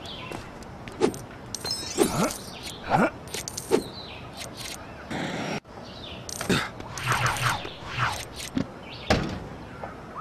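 Small coins chime and jingle in quick bursts as they are picked up.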